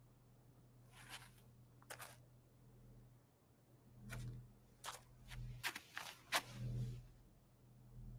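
Footsteps knock and thud on a hard floor.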